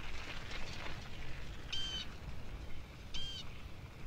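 A bicycle rattles along a dirt path.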